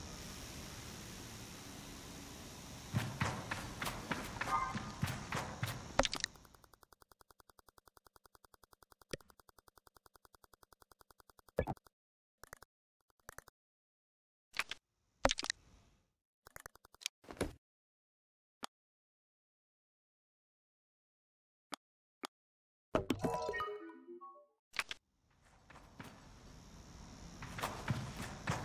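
Light footsteps run over sand.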